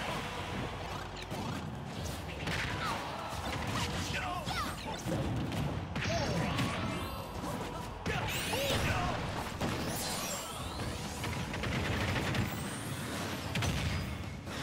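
Punches and blasts hit hard in quick bursts.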